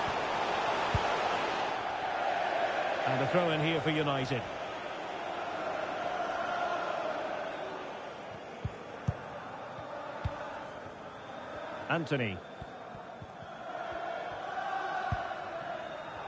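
A football is kicked with dull thumps now and then.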